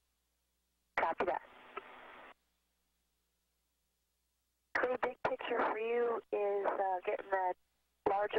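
A man speaks in short bursts over a crackly radio link.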